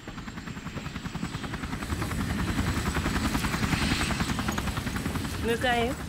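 A helicopter's rotor thumps steadily nearby.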